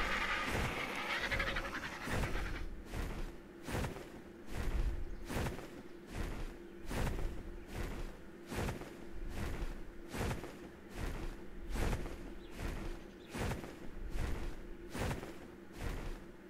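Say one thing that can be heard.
Large wings flap with rhythmic whooshing beats.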